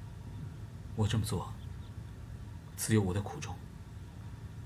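A man answers in a low, calm voice.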